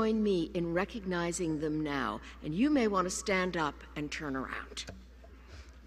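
An older woman speaks calmly into a microphone over a loudspeaker in a large hall.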